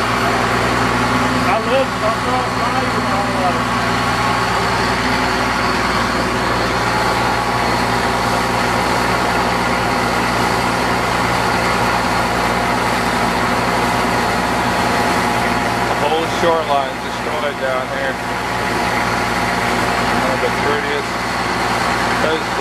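Water splashes and churns against a moving boat.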